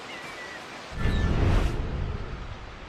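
A loud rushing whoosh sweeps past.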